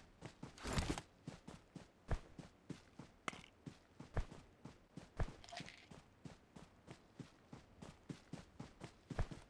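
Footsteps run quickly over grass.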